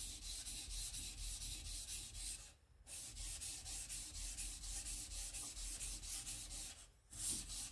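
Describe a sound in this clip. A knife blade scrapes back and forth in quick rhythmic strokes on a wet sharpening stone.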